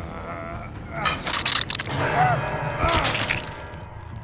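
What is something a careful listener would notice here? A knife slashes and stabs into flesh.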